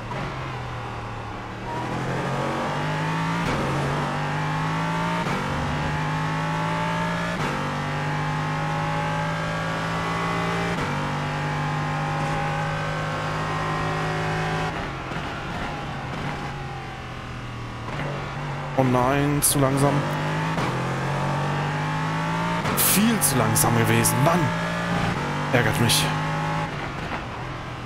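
A racing car engine roars, climbing in pitch and dropping at each gear shift.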